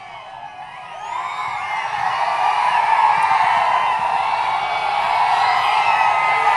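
A large crowd cheers and shouts outdoors, growing louder.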